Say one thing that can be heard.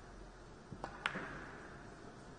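Billiard balls clack together.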